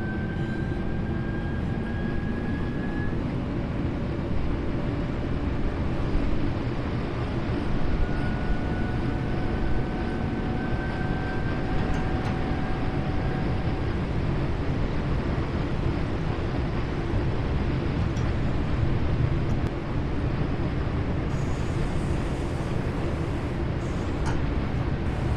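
Train wheels click over rail joints now and then.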